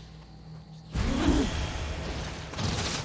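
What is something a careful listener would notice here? A magical burst whooshes loudly.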